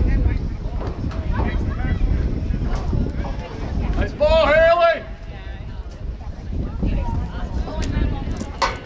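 Players shout across an open field.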